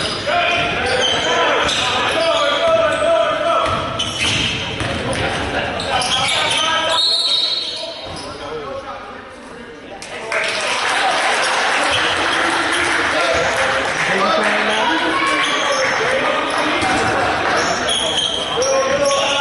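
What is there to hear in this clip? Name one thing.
Spectators and players talk and shout in an echoing gym.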